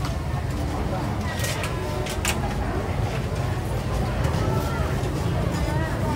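Plastic food boxes rattle and snap as they are handled.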